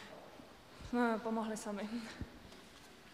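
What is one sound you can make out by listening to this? A young woman speaks briefly into a microphone.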